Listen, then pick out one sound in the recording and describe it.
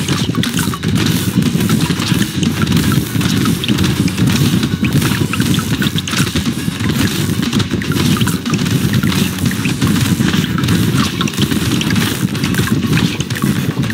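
Rapid game weapon shots crackle and zap without pause.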